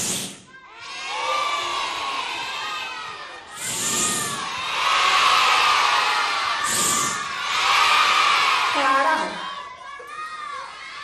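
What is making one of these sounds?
A crowd of young children shouts and cheers together.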